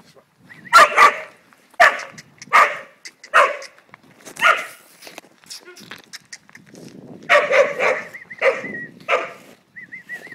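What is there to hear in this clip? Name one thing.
Dogs bark loudly in sharp bursts close by.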